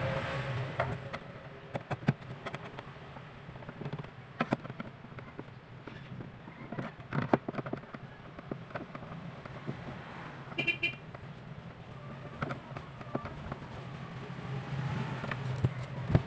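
A screwdriver clicks and scrapes against a plastic speaker case.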